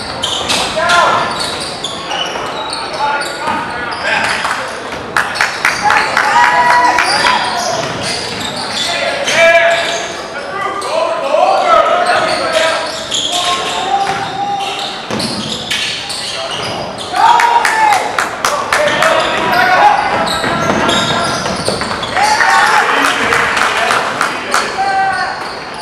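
A crowd of spectators cheers and calls out in a large echoing gym.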